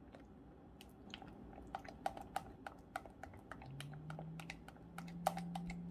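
A whisk taps quickly against a glass bowl.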